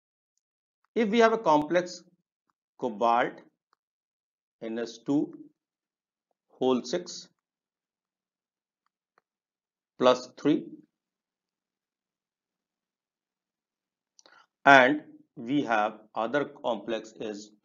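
A middle-aged man speaks calmly into a microphone, explaining in short phrases with pauses.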